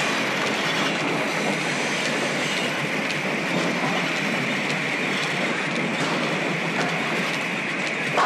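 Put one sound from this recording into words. A hand plane scrapes along wood.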